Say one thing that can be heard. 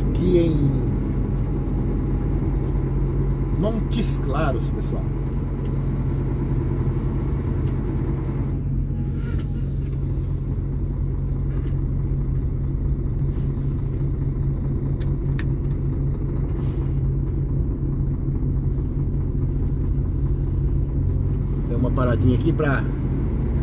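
A parked truck's engine hums steadily nearby.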